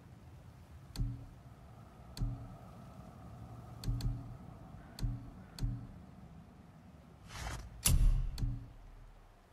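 Soft game menu clicks tick now and then.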